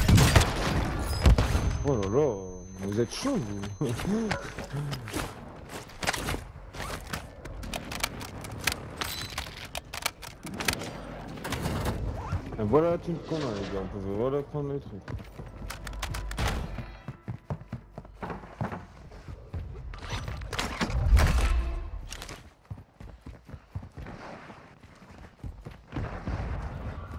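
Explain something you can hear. Footsteps thud and tap on stairs and pavement.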